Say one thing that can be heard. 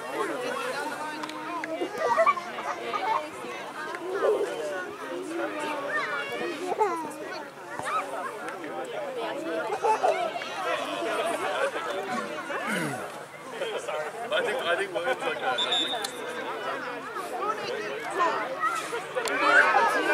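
Young children chatter and call out nearby, outdoors.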